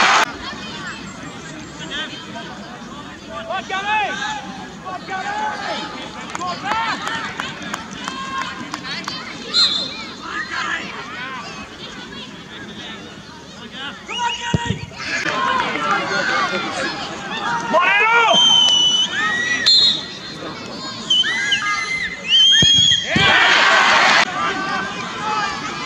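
A crowd of spectators shouts and calls out outdoors.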